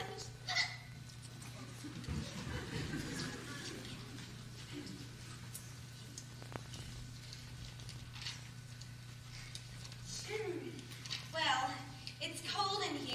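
Young women speak with animation, distant in a large hall.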